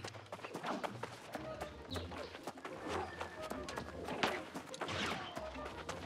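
Footsteps run quickly across hard ground.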